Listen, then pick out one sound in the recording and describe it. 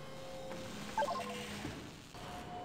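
A short electronic chime plays.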